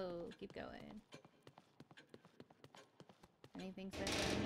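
Footsteps tap slowly on a hard floor.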